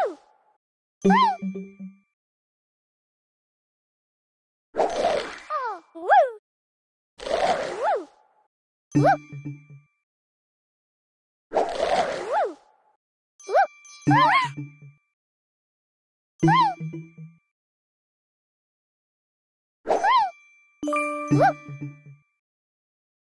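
Soft popping sounds burst in quick clusters.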